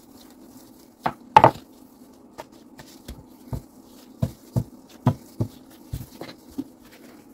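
A wooden rolling pin rolls and knocks against a wooden board.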